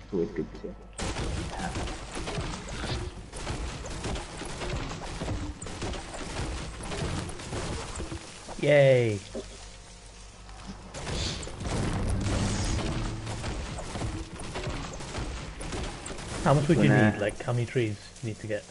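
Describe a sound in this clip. A pickaxe strikes wood with repeated thuds and cracks.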